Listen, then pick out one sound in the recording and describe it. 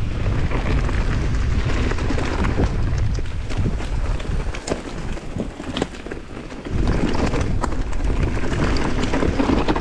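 A bicycle rattles over bumps and roots.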